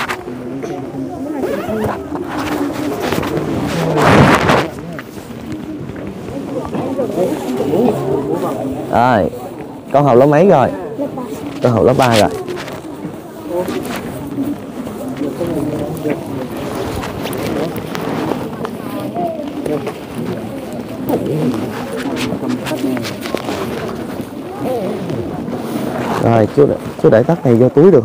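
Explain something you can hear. Many children chatter and call out close by, outdoors.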